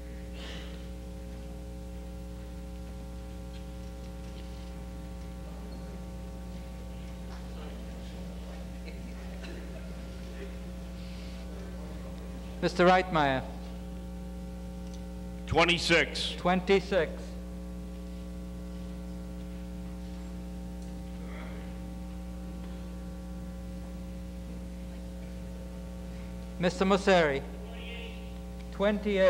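A large crowd murmurs in a large hall.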